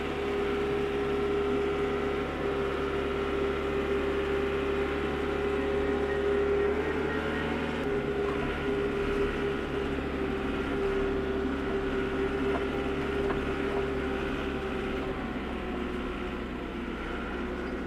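A tractor engine runs with a steady drone.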